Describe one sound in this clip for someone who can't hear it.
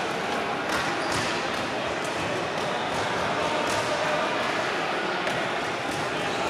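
Boxing gloves thud against pads in a large echoing hall.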